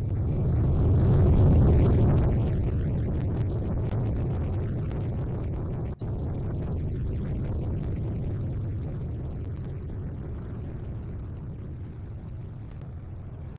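A helicopter roars close by, then fades as it flies away.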